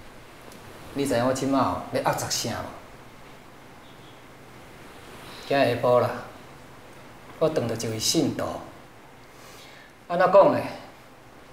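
A middle-aged man speaks quietly and slowly, close by.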